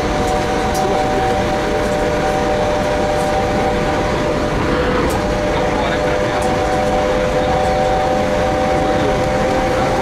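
A train whines with a steady high hum.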